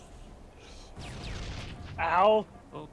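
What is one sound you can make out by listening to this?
A rifle fires a rapid burst.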